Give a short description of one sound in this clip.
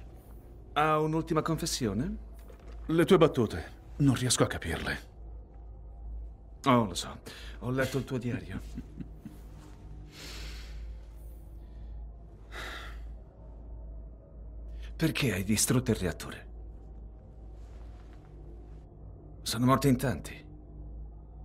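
A man speaks calmly up close, in short exchanges with pauses.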